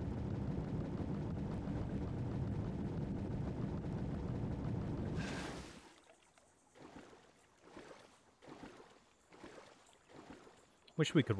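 A man talks into a close microphone in a calm voice.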